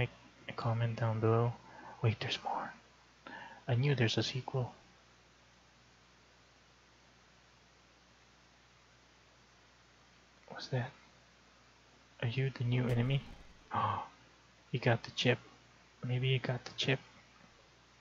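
A young man talks with animation close to a microphone, in short bursts with pauses.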